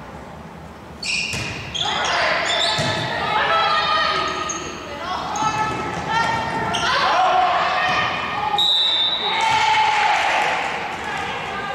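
Young women shout and cheer loudly in a large echoing gym.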